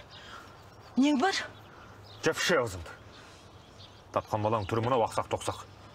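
A man argues back loudly.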